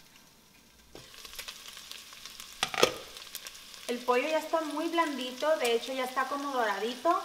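Food sizzles steadily in a pot.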